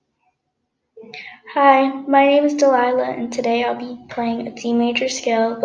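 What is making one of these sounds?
A violin plays a slow scale of bowed notes.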